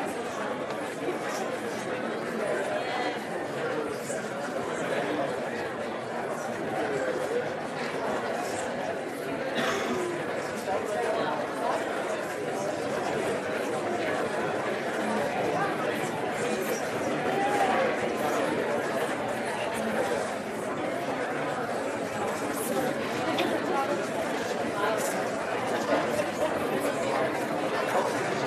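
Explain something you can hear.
A crowd of men and women chatters all around in a large room.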